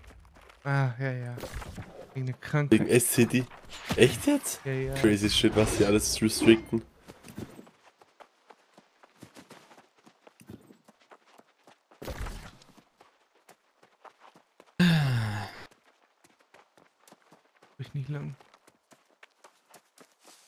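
Footsteps patter lightly on a dirt path.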